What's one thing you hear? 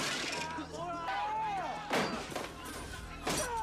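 A man cries out in pain, close by.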